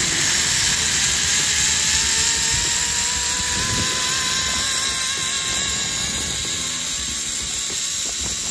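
A zipline pulley whines along a steel cable, rising in pitch.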